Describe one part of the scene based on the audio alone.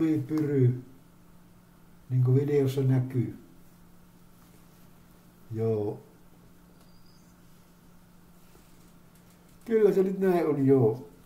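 A man speaks calmly in short bursts, close to the microphone, slightly muffled.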